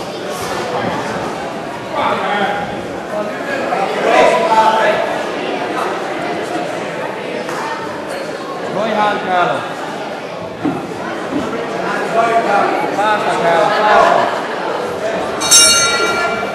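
Boxing gloves thump against bodies and gloves in an echoing hall.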